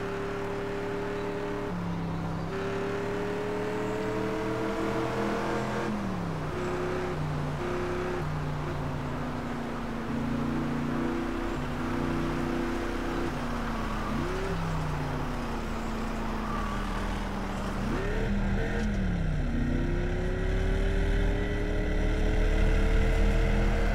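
A car engine hums steadily and revs up, its pitch dropping sharply at each gear change.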